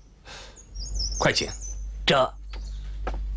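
A man answers briefly.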